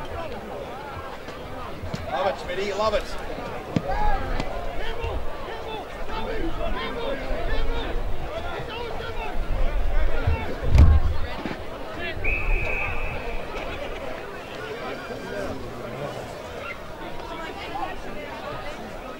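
A crowd of spectators shouts and cheers outdoors in the distance.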